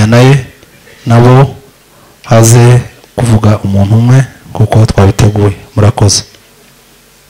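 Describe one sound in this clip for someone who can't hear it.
A man speaks loudly into a microphone over a loudspeaker in an echoing hall.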